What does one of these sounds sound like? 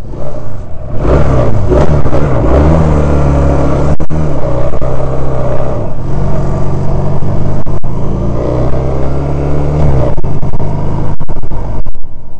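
A small twin-cylinder motorcycle engine revs up and shifts through gears as it rides along.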